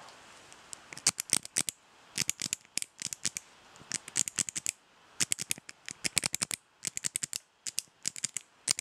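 A hand taps rapidly and unevenly on a microphone close by.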